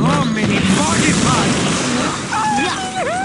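Explosions roar and crackle with fire.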